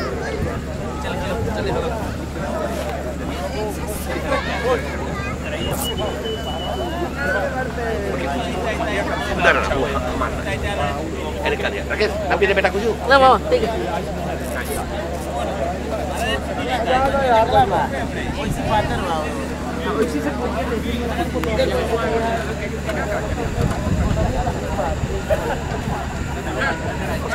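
A crowd of men and women chatters outdoors, with many voices overlapping.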